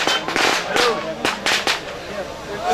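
Loud bangs go off in quick succession outdoors.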